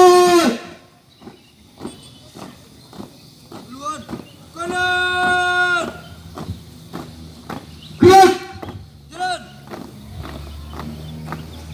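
Marching feet stamp in a steady rhythm on dirt.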